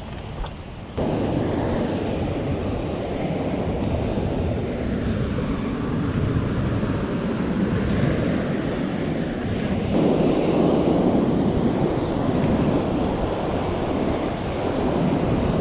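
Waves crash and roar against rocks close by.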